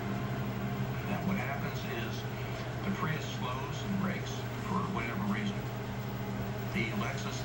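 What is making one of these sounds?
An older man speaks calmly through a television speaker.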